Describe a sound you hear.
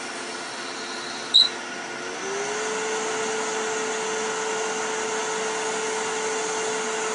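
A cloth rubs against a turning wooden piece.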